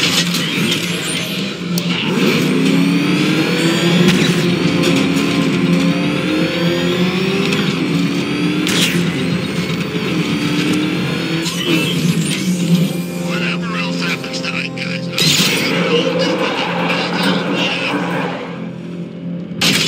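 A powerful car engine roars and revs as the car speeds along.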